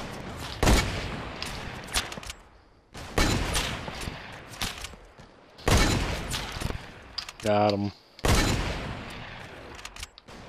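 Rifle shots boom at intervals, each trailing off in a long echo.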